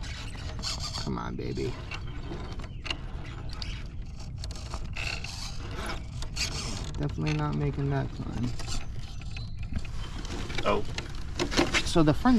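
A small electric motor whines in short bursts, rising and falling in pitch.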